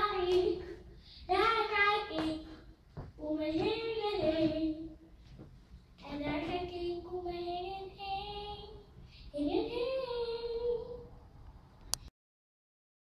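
A young girl sings loudly into a microphone, close by.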